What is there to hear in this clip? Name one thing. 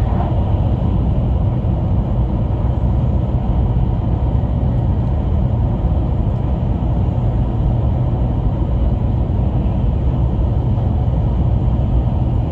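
A fast train rumbles steadily, heard from inside the carriage.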